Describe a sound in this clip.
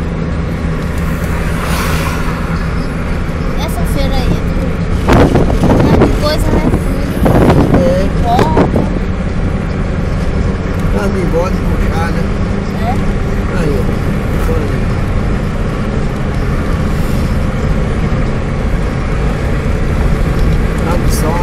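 A vehicle's engine hums steadily with road noise while driving.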